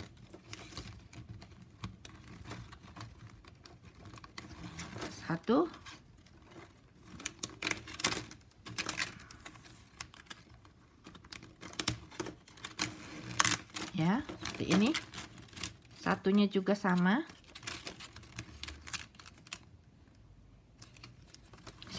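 Plastic strapping band rustles and crinkles as hands weave it.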